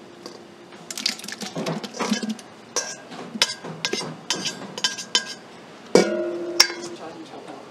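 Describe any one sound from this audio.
A knife taps against a metal bowl.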